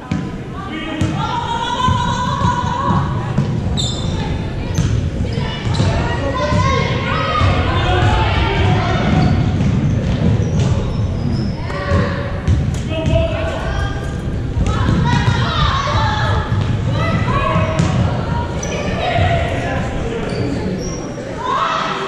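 Adult men and women in the crowd chat loudly close by, in a large echoing hall.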